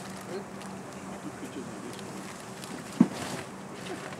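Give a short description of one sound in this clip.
A plastic bag rustles as it is handled.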